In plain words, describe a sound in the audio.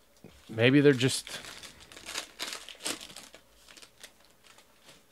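Plastic wrapping crinkles as a pack of cards is torn open.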